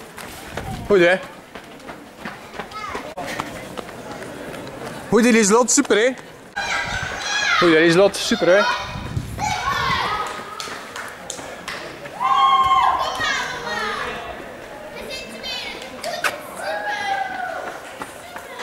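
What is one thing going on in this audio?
A runner's shoes slap on the cobbled street.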